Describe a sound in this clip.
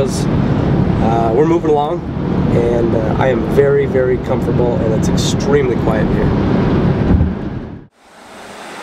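Road noise rumbles steadily inside a car.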